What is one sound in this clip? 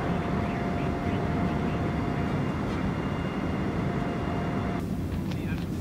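An airplane engine drones steadily inside a cabin.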